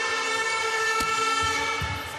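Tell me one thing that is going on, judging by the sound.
A volleyball is struck hard with a hand.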